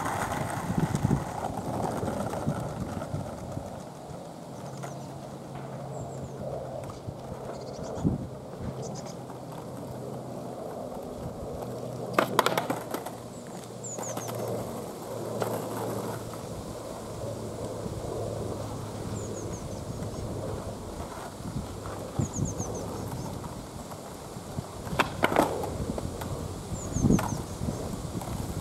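Skateboard wheels roll and rumble over rough asphalt.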